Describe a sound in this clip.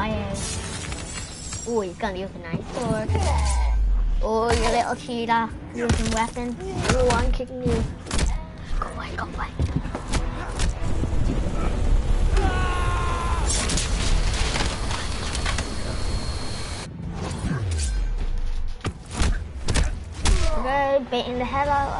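Heavy blows land with loud thuds and metallic clashes.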